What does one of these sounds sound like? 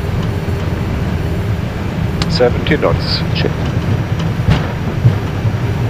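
Aircraft wheels rumble and thump over the runway.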